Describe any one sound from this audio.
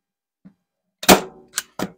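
A staple gun snaps as it fires.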